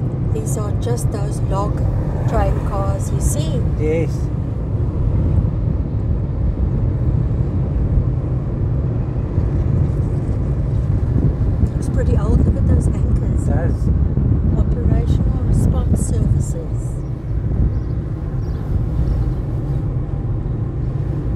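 A car engine rumbles steadily as the car drives along a road.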